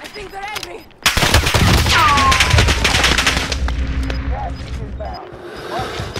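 Explosions boom and rumble nearby.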